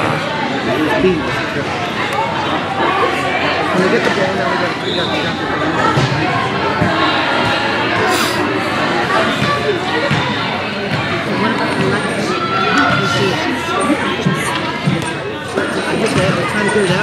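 Young women shout and call to one another in a large echoing hall.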